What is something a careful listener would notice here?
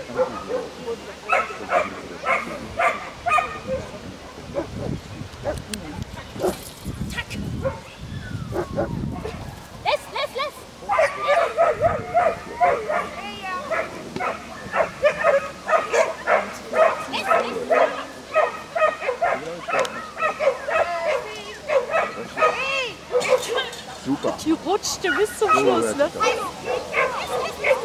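A woman calls commands to a dog outdoors.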